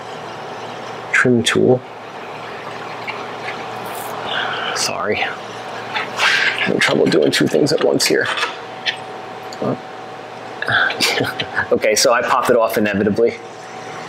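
A metal pick scrapes and taps against rusty metal, close by.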